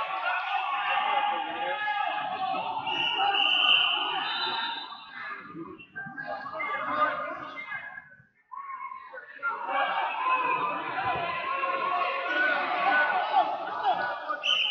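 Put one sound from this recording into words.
Wrestlers' shoes squeak on the mat.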